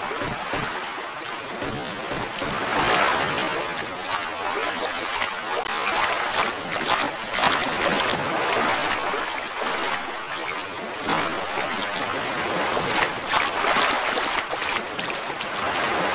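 Footsteps thud quickly on sand.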